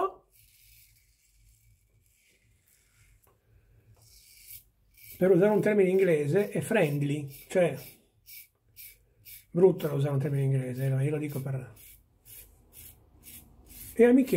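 A razor scrapes across stubble in short strokes.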